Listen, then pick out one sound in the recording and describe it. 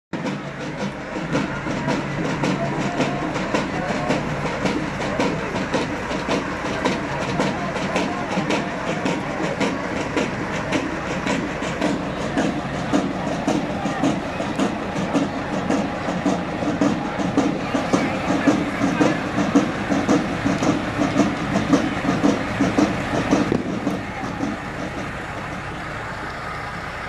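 A truck engine rumbles slowly past at close range.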